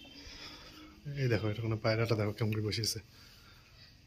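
A pigeon coos close by.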